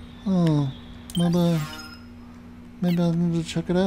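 A short electronic tone sounds as a game menu opens.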